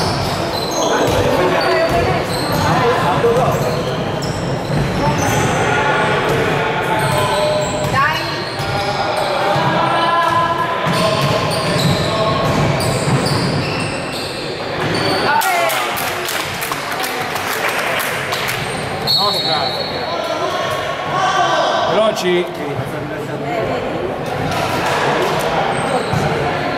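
Several young players shout and call out to each other in a large echoing hall.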